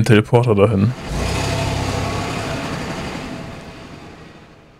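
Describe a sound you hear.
A bus engine rumbles as the bus pulls away and slowly fades.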